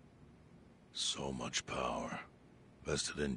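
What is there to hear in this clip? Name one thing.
An elderly man speaks gravely, close by.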